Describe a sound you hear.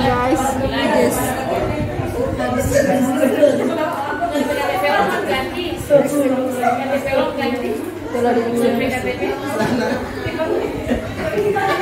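A young woman speaks with animation a little further away.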